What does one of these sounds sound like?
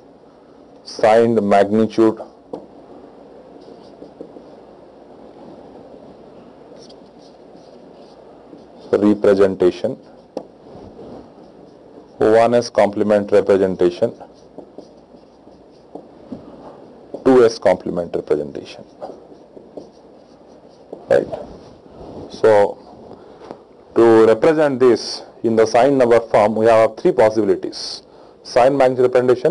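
A man speaks calmly into a close microphone, lecturing in bursts with pauses.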